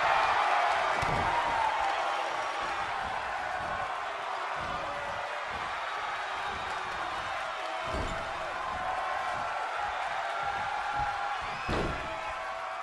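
Bodies thud hard onto a wrestling ring mat.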